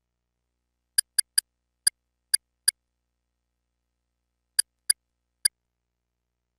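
Soft game menu clicks tick in quick succession.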